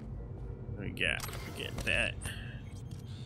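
A man speaks briefly and closely into a microphone.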